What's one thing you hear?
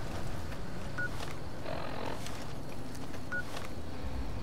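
A small electronic device beeps.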